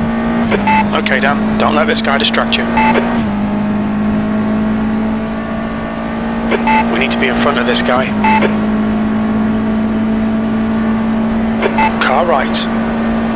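A racing car engine drones steadily at high revs, shifting gear now and then.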